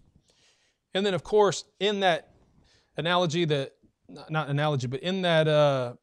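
A middle-aged man speaks steadily into a microphone.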